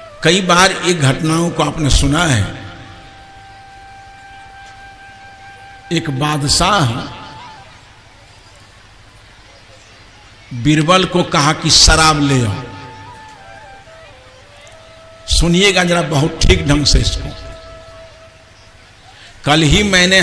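An elderly man speaks with animation through a microphone, in bursts with pauses, with a ringing echo.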